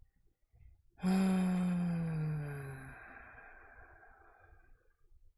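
A short descending musical sting plays and fades.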